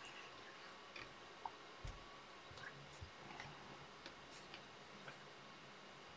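A small metal clamp clicks and knocks as it is handled close by.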